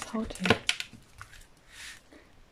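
A plastic-coated canvas rustles and crinkles as it is handled.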